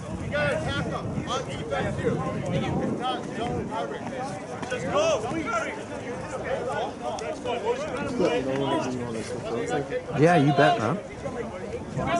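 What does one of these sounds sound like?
Young players shout and call out to each other across an open field outdoors.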